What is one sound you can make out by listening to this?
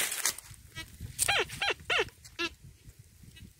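A metal detector beeps over the ground.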